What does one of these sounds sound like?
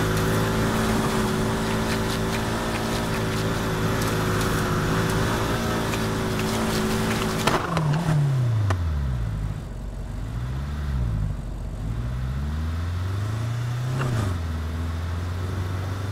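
Tyres skid and spin on sand.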